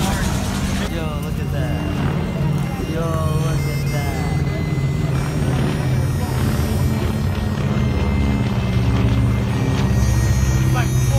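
A propeller plane drones overhead.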